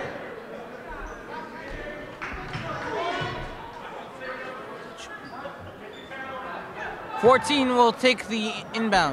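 A crowd murmurs and chatters in an echoing gym.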